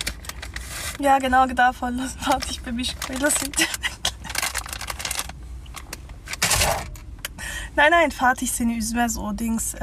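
A young woman talks close to the microphone.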